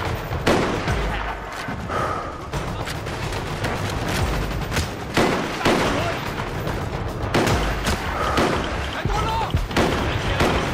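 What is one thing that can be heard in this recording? A rifle fires loud shots, one after another.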